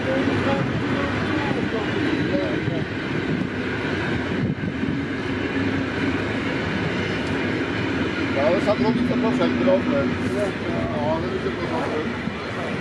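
Railway carriages rumble past over the rails.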